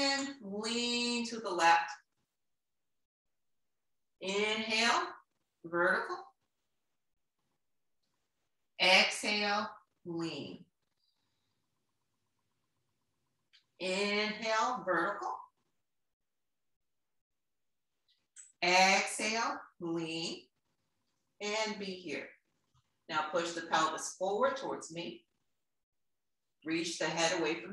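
A woman speaks calmly in short phrases, as if guiding an exercise, close by.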